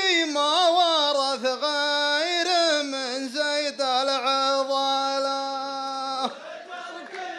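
A man chants in a loud, drawn-out voice through a microphone.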